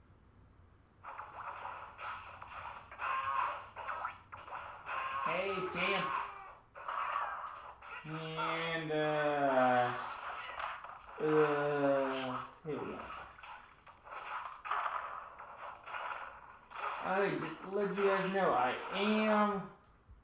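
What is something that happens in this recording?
Video game fighting effects thump and clash in quick bursts.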